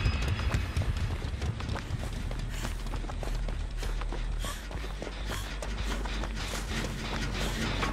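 Quick footsteps run over dirt and dry grass.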